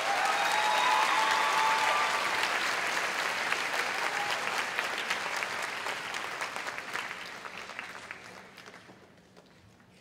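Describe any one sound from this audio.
An audience applauds and cheers in a large hall, then fades.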